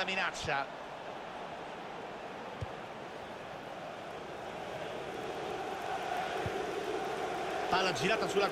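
A stadium crowd roars and chants steadily, growing louder.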